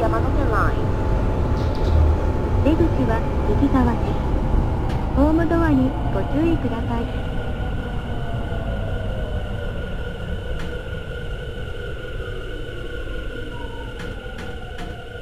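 An electric train motor whines, its pitch rising and falling as it gathers speed.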